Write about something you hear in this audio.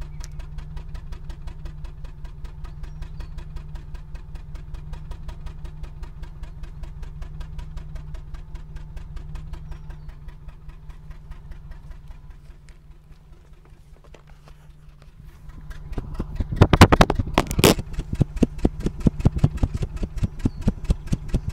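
A car engine idles with a rapid, steady chugging that grows louder and rougher close to the exhaust.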